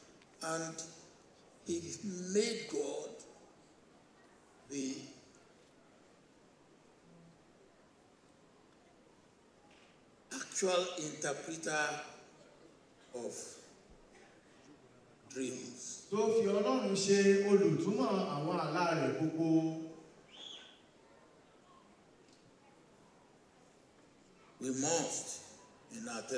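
An elderly man speaks slowly through a microphone, with long pauses.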